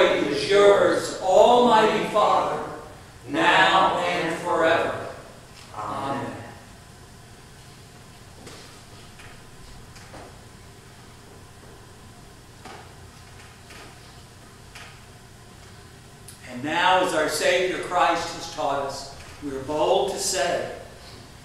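A man speaks in a calm, measured voice in a large echoing hall.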